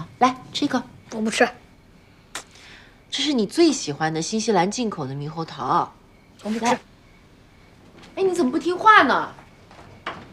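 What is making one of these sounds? A young woman speaks coaxingly, close by.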